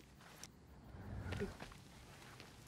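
A figure lands heavily on the ground after a jump.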